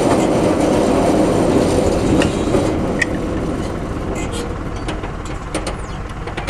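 Traffic hisses past on a nearby road.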